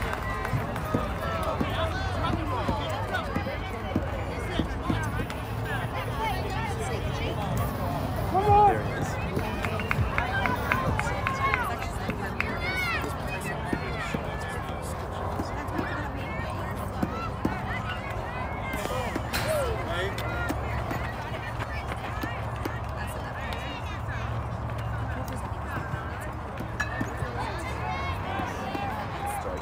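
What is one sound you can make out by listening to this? Young girls shout and cheer across an open field.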